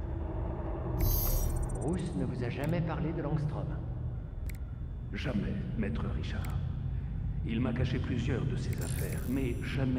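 A soft electronic menu chime sounds as options are selected.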